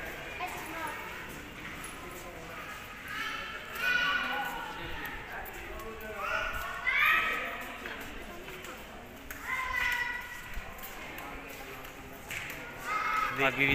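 Men and women chatter in the distance, with a slight echo.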